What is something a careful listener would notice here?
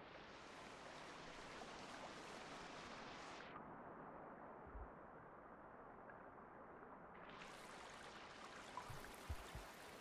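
Water splashes softly as a small creature swims.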